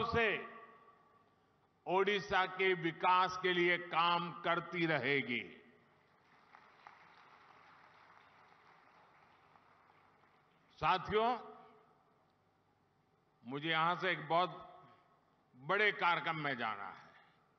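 An elderly man speaks forcefully through a microphone.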